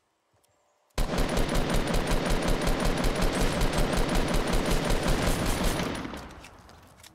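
A rifle fires rapidly in a long burst.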